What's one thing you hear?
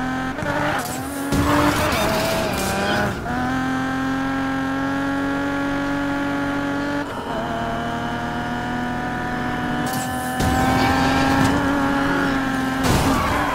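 A sports car engine revs hard and roars through gear changes.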